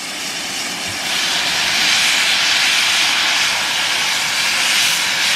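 A steam locomotive hisses loudly as it releases steam close by.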